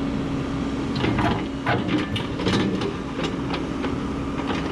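An excavator bucket scrapes and knocks against dirt and stones.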